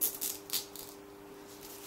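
A plastic sheet rustles and crinkles as a hand wipes over it.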